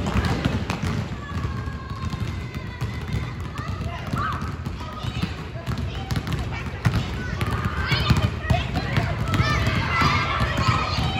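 Children's voices chatter and shout in the background.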